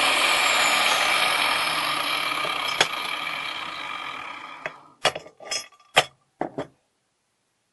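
Pliers squeeze and bend metal wire.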